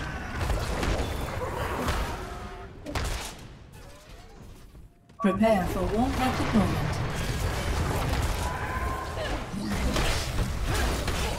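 Explosions and blasts boom and crackle in a fast fight.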